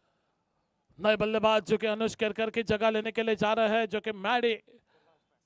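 A man commentates through a microphone.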